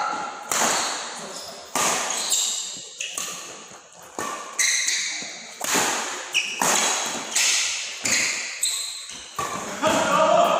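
Badminton rackets strike a shuttlecock in a rally in an echoing hall.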